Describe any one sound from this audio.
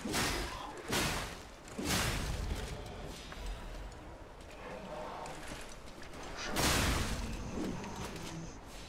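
Weapon blows land with sharp, heavy hits in a fight.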